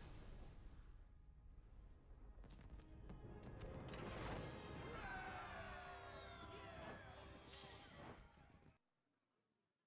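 Bright, triumphant game music and chiming effects play loudly, then stop abruptly.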